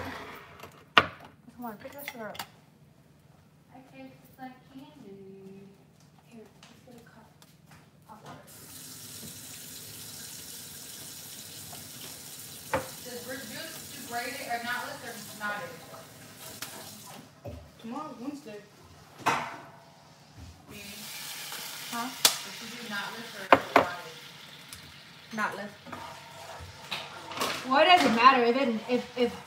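Dishes clatter and clink on a counter.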